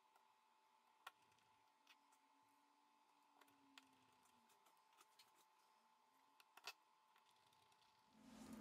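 A plastic pry tool clicks and scrapes against a phone frame.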